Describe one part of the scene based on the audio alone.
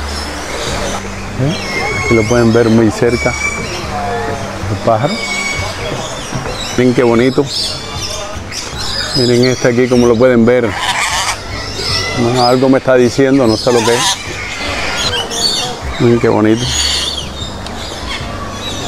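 Birds chirp and twitter nearby.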